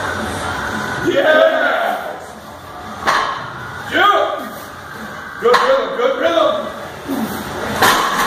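A man grunts and groans with strain.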